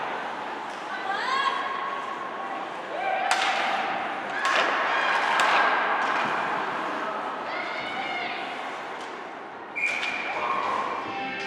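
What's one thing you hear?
Skates scrape and carve across ice in an echoing rink.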